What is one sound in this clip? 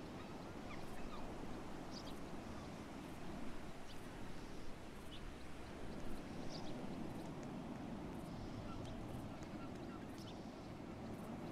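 Footsteps tap softly on a floor.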